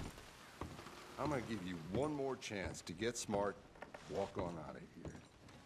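A man speaks sternly nearby.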